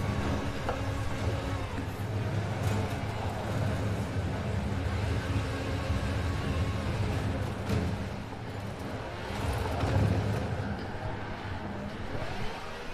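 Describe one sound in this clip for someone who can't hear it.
A sports car engine revs and roars steadily.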